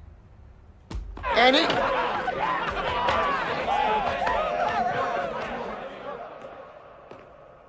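A crowd of men cheer and chatter loudly nearby.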